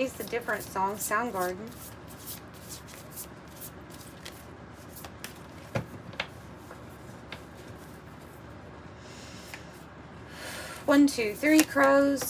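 Playing cards riffle and slap softly as they are shuffled by hand.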